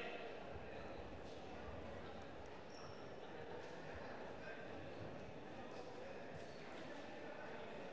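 Wrestlers' shoes squeak and thud on a mat.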